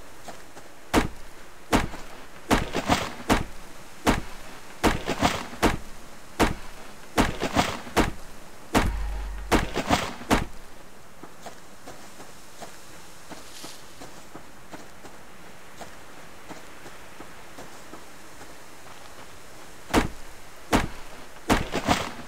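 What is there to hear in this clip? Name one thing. An axe chops into a tree trunk with sharp, repeated thuds.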